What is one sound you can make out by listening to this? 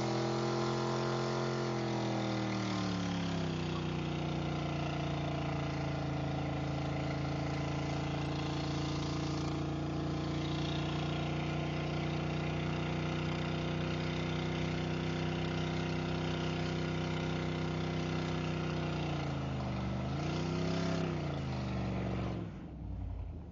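A truck engine roars at high revs, dropping in pitch and then holding steady.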